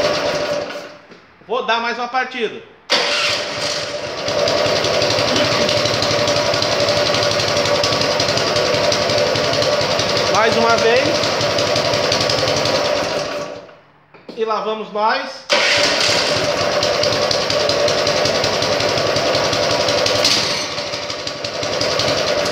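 A small petrol engine runs with a loud, steady clatter nearby.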